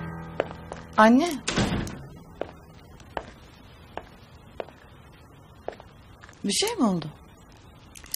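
A young woman calls out questioningly.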